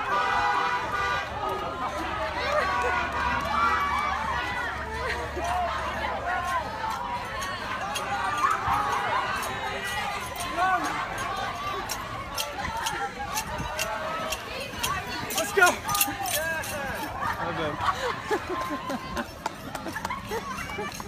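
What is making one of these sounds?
A crowd of people cheers and chatters nearby outdoors.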